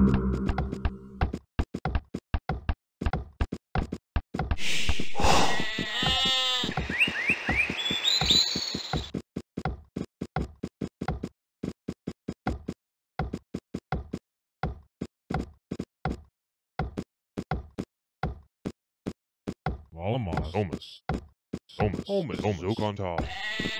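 Farm hoes thud into soil in a quick, steady rhythm.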